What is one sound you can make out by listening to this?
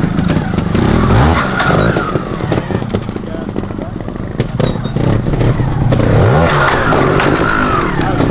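A motorcycle's tyres scrape and thump over rocks.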